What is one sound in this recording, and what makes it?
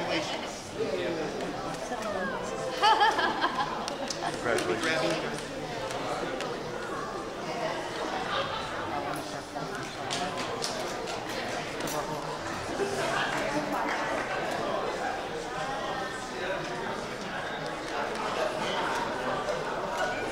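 Guests clap their hands.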